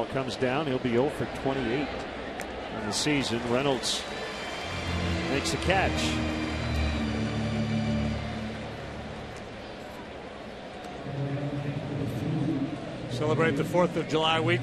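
A large stadium crowd murmurs and cheers in an open, echoing space.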